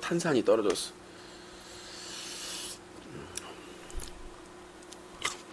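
Food crunches and smacks as a young man chews close to a microphone.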